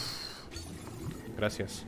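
A young man talks briefly into a close microphone.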